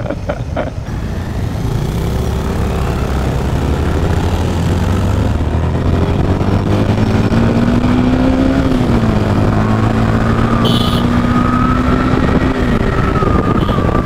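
Wind rushes past a moving motorcycle.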